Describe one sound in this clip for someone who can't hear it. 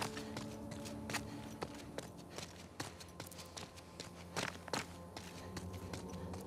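Footsteps tap quickly on a hard tiled floor.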